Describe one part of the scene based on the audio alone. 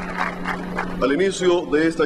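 A man speaks calmly into a microphone over loudspeakers.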